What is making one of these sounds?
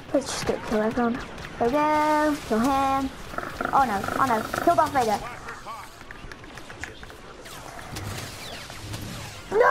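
Laser blasters fire in quick bursts.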